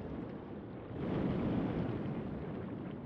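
Water splashes as a figure breaks the surface.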